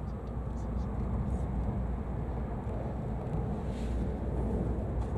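A passing train rushes by close outside with a brief whoosh.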